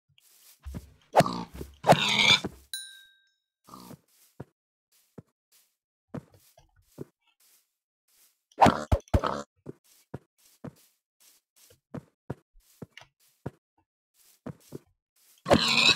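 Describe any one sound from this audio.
A pig grunts and oinks.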